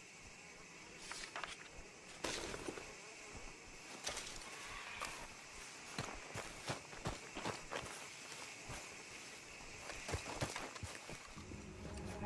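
Footsteps crunch through dry leaves and brush.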